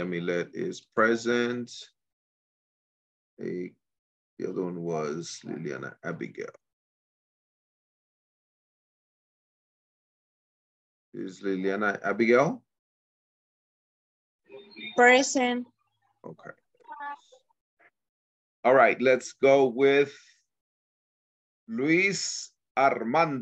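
A man speaks over an online call, in short bursts with pauses.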